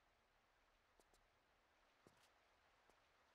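Footsteps land softly on ice.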